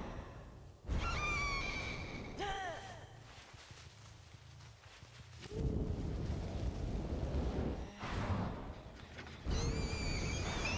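A young man talks with animation into a microphone.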